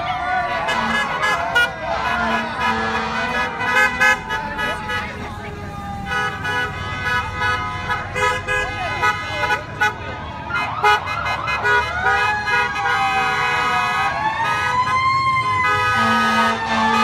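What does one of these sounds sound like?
Young men and women cheer and shout from the roadside.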